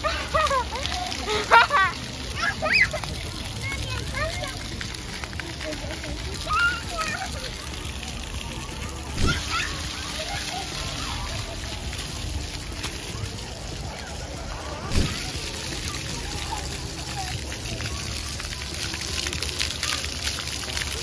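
Fountain jets splash and spray water.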